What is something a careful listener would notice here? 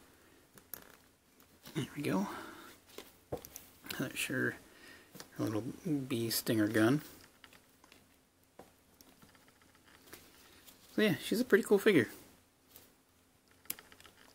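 Small plastic parts click and tap as a toy figure is handled.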